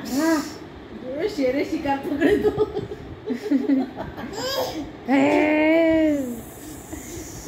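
A toddler babbles and squeals playfully.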